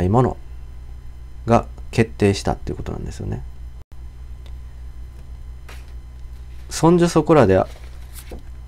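A young man speaks calmly and close up, with pauses.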